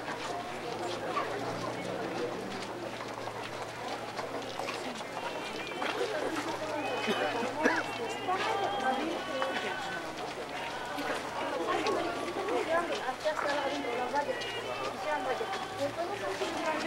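A crowd of people chatter all around outdoors at night.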